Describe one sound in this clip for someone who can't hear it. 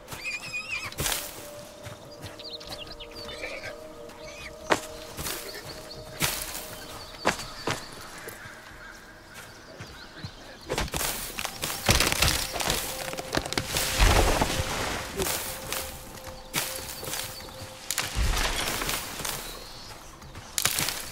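Plants are plucked with short snapping sounds.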